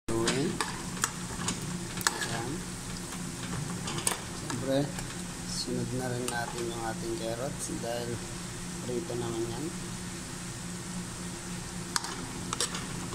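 A metal ladle clinks and scrapes against a pot.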